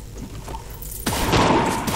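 A magic blast bursts with a loud roar.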